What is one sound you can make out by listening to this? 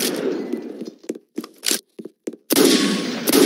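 A gun is reloaded with a few quick metallic clicks.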